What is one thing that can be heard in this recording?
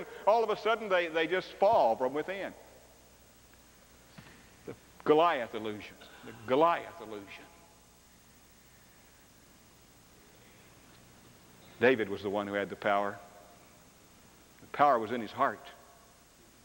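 A middle-aged man preaches with animation through a microphone in a large echoing hall, pausing between phrases.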